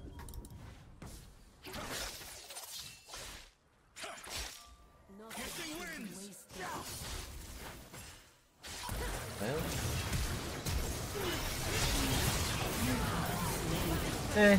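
Game combat effects clash and crackle in quick bursts.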